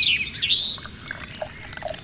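Water pours from a small cup into a trough.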